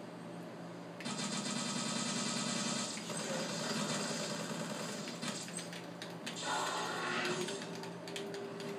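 Gunfire rattles in rapid bursts from a video game.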